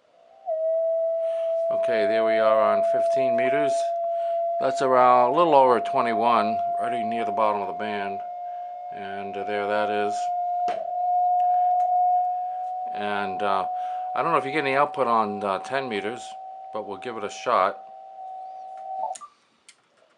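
A radio receiver gives a steady, slightly rising whistling tone.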